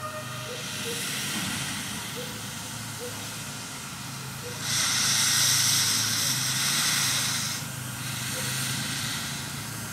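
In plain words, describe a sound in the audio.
Steam hisses loudly from beside a locomotive.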